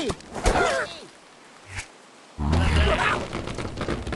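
A slingshot stretches and launches with a twang.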